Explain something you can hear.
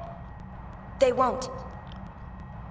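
A young woman answers firmly.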